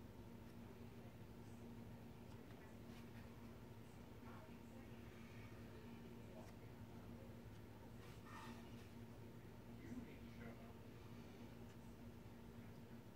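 Hands handle and turn a small cardboard panel, which rustles and taps faintly on a table.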